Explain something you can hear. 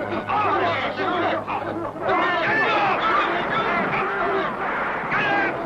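A crowd of men and women shouts and clamours excitedly nearby.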